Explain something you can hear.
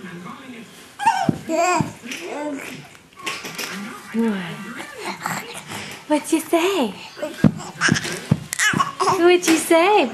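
A baby babbles and squeals close by.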